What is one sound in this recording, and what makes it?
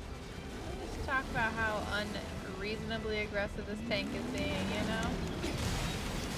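A young woman talks into a headset microphone.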